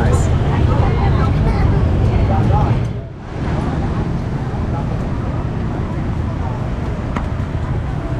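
Street noise rumbles steadily outdoors.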